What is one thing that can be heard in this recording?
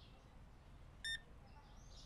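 A card payment terminal beeps once.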